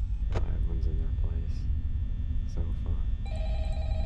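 A young man speaks briefly and casually into a microphone.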